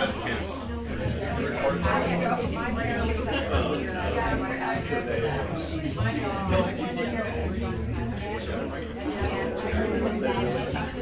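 A man speaks calmly to an audience in an echoing room.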